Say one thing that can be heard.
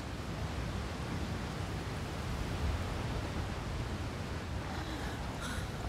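Wind blows steadily outdoors with a low rumble.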